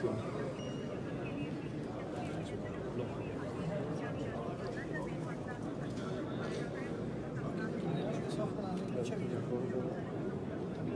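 A large crowd of men murmurs and chatters softly in a large echoing hall.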